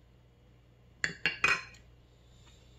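A spoon clinks against a glass bowl.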